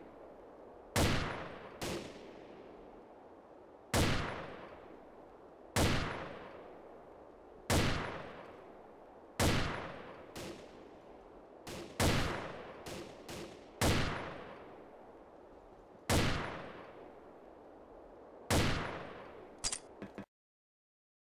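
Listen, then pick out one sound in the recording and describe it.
A rifle fires single loud shots, each followed by a ringing echo that fades.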